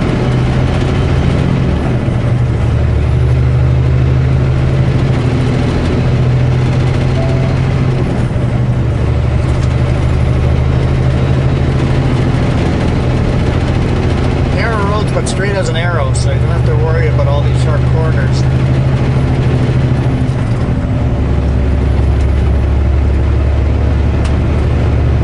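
Tyres roll along the road with a steady rumble.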